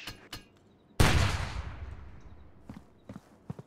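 A grenade explodes with a loud, deep boom that slowly rings out.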